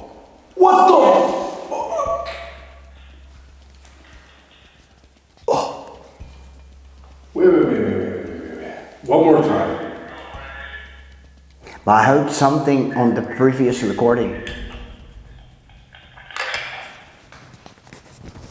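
A man speaks close by in short bursts, with animation.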